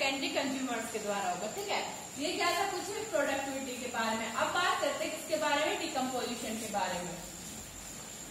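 A young woman speaks calmly, explaining, close by.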